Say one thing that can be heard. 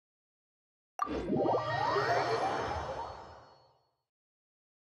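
A bright magical chime rings out and slowly fades.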